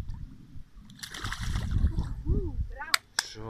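Water splashes as fish thrash at the surface.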